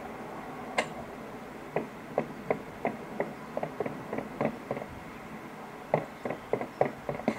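Gunshots from a video game crack in quick bursts through a small phone speaker.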